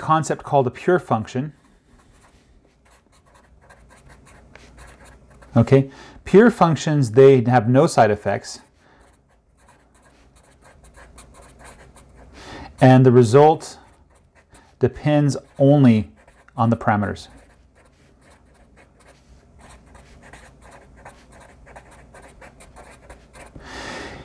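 A marker squeaks and scratches across a whiteboard.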